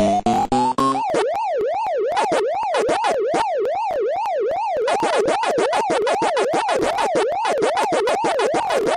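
Quick electronic chomping blips repeat rapidly.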